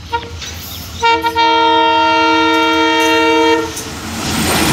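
A locomotive horn blares loudly.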